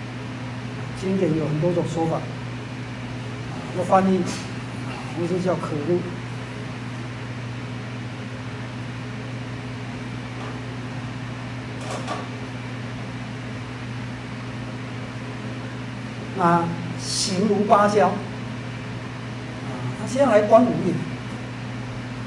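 An elderly man speaks calmly in short phrases.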